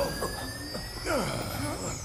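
Laser beams zap and whir sharply.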